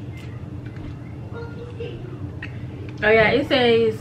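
A woman chews food noisily.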